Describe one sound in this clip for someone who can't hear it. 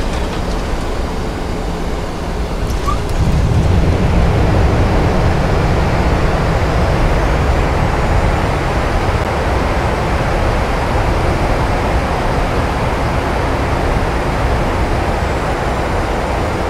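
An airliner's wheels rumble on a runway.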